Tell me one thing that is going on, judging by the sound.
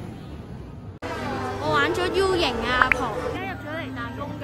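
A boy speaks close by.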